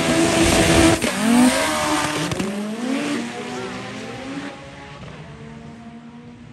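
Race cars accelerate hard down a track, their engines revving and fading into the distance.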